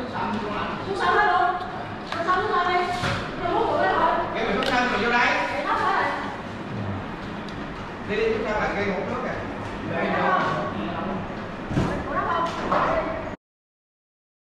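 Several men talk and chatter nearby in a large echoing hall.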